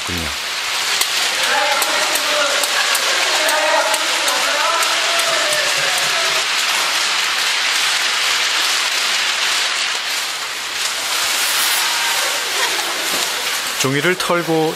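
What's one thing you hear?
A crowd sings together in a large, echoing hall.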